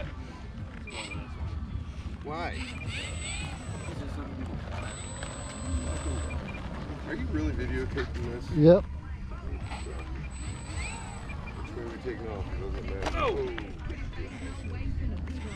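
A small electric model plane motor whirs and revs up and down.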